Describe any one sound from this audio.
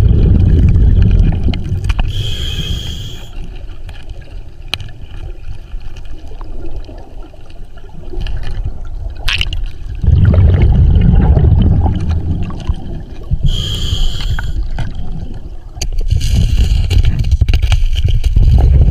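Bubbles from a diver's breathing rumble and gurgle close by underwater.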